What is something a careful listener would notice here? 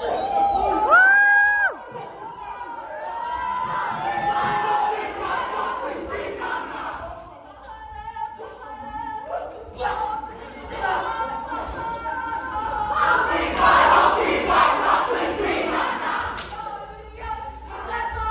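A group of young men and women shout and chant together in a large echoing hall.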